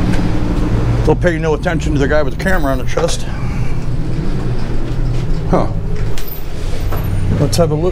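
A glass door opens and swings shut.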